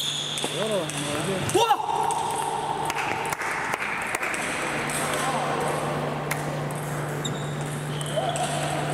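Footsteps tread on a hard floor in a large echoing hall.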